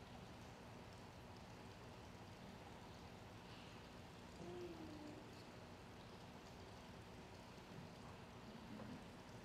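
An elderly man prays in a low voice through a microphone.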